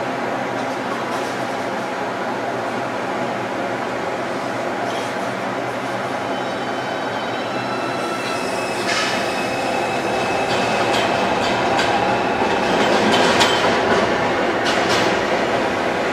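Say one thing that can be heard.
Metal debris clanks and scrapes as excavators dig through rubble.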